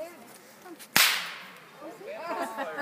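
A musket fires with a loud bang that echoes away.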